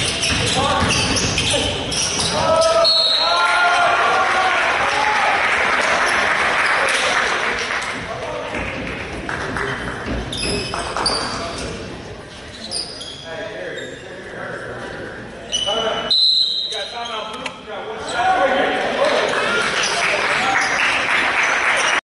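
A crowd of spectators talks and cheers, echoing in a large hall.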